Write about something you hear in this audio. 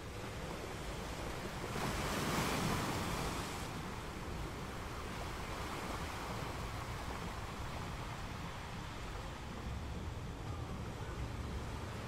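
Foaming water rushes and hisses over rocks.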